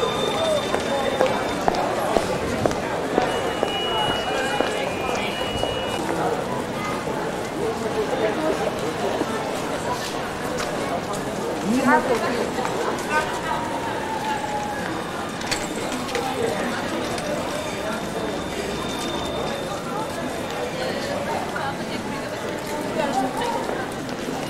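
A busy street crowd murmurs and chatters outdoors.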